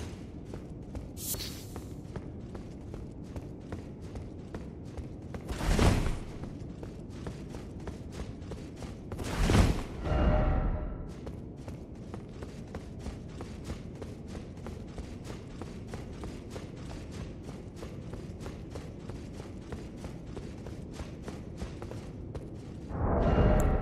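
Quick footsteps run over a stone floor in an echoing hall.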